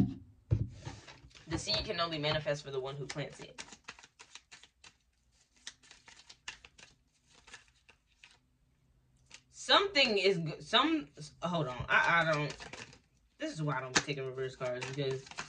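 Playing cards are shuffled by hand with soft, quick flicks and clicks.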